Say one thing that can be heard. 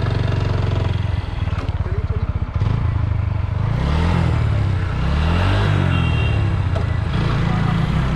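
A motorcycle engine revs up and down as gears shift.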